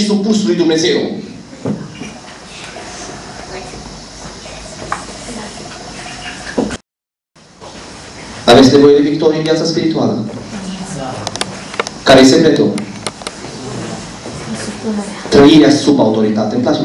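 A man speaks through a microphone and loudspeakers in an echoing hall, with pauses between phrases.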